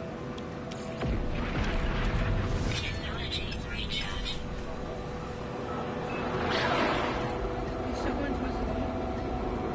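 A spaceship engine rumbles deeply and roars louder as it lifts off.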